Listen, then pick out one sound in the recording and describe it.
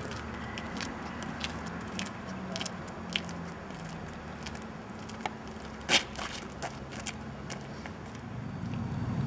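Footsteps scuff and tap on a paved path.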